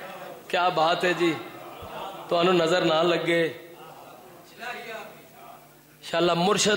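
A man recites loudly and with feeling through a microphone, his voice ringing in an echoing room.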